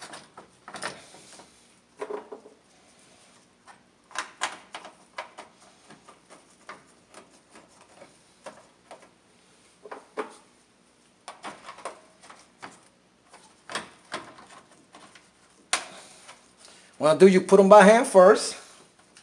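Plastic parts click and knock as hands work them loose.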